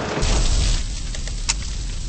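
A car thuds into something.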